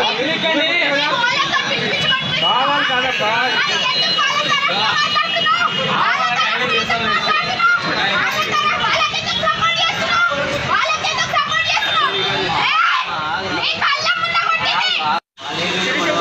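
A young woman shouts angrily up close.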